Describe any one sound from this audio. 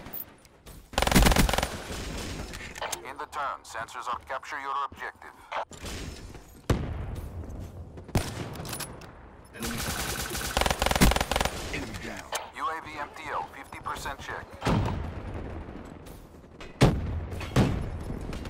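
Gunfire rings out in short bursts.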